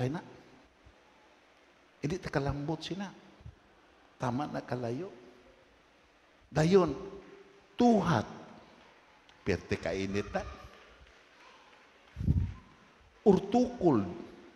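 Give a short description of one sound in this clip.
An elderly man preaches through a microphone in bursts, with pauses, in an echoing hall.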